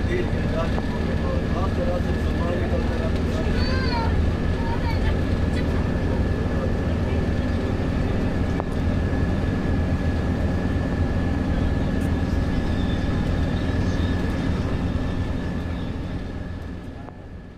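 A bus engine drones steadily inside the cabin while driving.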